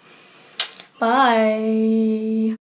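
A young woman sings a long held note close by.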